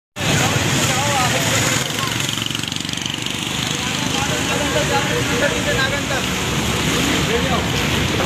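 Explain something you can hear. A motorcycle engine rumbles steadily close by.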